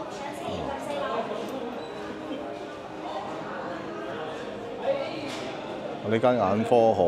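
A crowd of adults chatters in an echoing hall.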